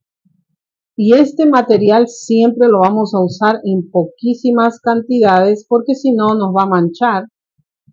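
A woman talks calmly and clearly into a microphone.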